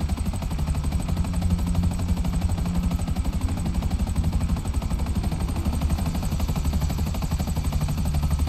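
A helicopter engine whines and hums steadily.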